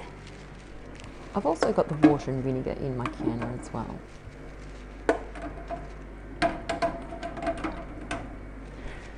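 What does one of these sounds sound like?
Glass jars clink against each other and a metal pot as they are set down.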